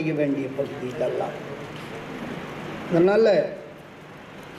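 An elderly man speaks or chants into a microphone, heard over a loudspeaker.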